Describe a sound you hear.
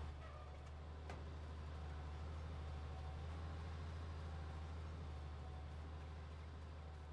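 Footsteps crunch over soft soil.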